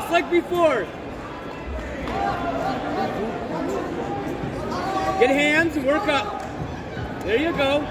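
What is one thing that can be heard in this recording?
Spectators shout encouragement from the stands of a large echoing hall.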